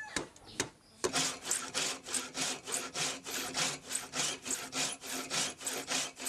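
A blade scrapes rhythmically across wood.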